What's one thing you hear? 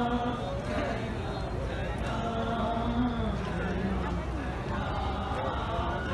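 A man chants in a slow, mournful voice through a microphone.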